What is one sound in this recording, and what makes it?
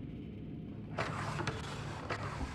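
A metal drawer slides open.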